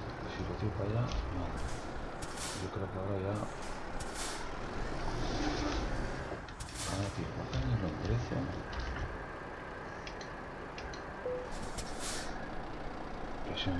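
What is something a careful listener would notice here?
A truck engine rumbles at idle.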